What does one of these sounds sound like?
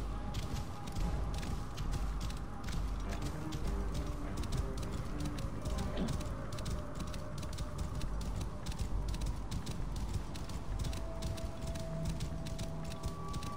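Horse hooves gallop quickly over soft sand.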